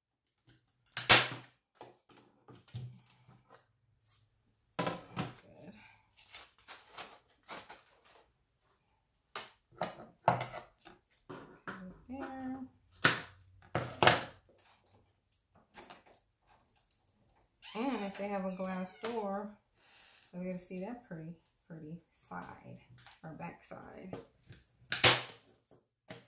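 A staple gun snaps loudly.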